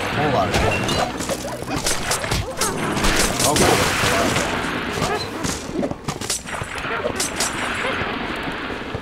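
Video game combat hits and magic bursts play.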